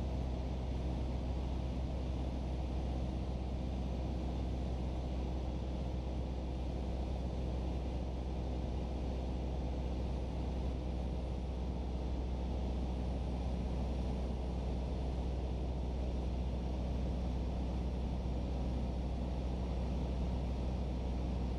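Wind rushes steadily past the plane's cabin.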